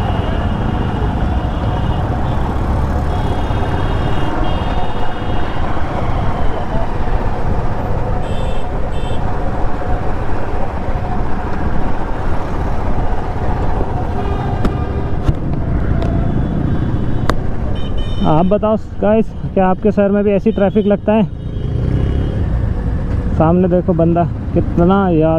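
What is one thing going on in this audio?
A motorcycle engine hums steadily while riding through traffic.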